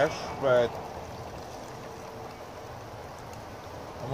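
Liquid pours from a can into a jug.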